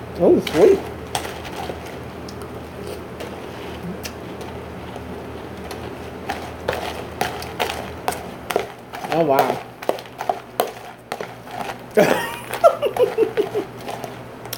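A woman chews crunchy cereal.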